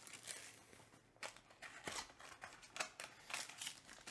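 A foil wrapper of a card pack crinkles as it is torn open.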